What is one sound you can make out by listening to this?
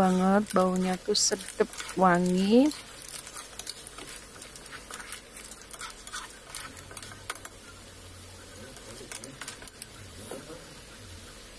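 A spatula scrapes and clatters against a pan.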